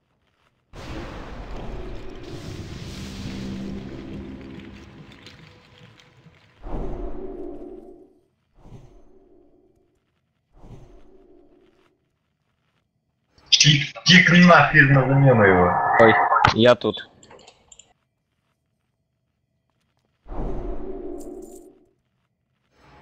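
Magic spell effects whoosh and shimmer in short bursts.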